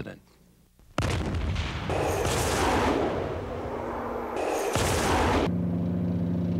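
A rocket launches with a loud roaring blast.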